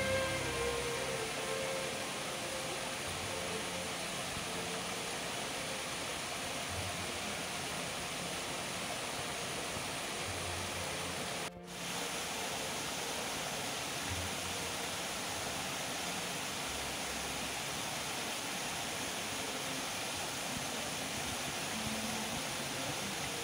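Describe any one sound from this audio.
A small waterfall splashes into a pond.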